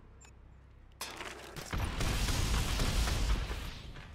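An electric device crackles and sparks loudly.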